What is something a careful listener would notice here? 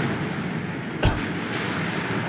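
A heavy impact strikes with a sharp thud.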